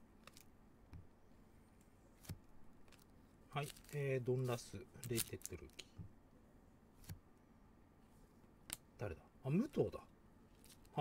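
Gloved hands shuffle and tap trading cards.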